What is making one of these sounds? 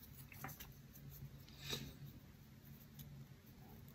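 Wooden chopsticks scrape as they are rubbed together.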